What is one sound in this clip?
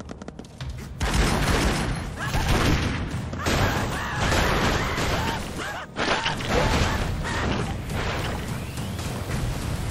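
Explosions boom and rumble one after another.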